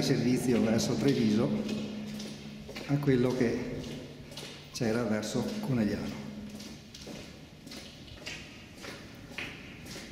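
Footsteps echo on a concrete floor in a hollow passage.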